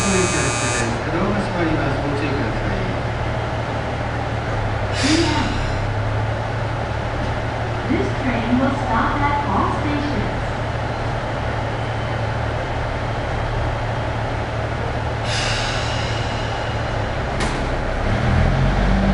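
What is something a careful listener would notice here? A diesel express railcar idles.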